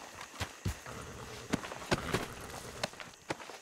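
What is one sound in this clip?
Clothing rustles and thumps as a body is searched.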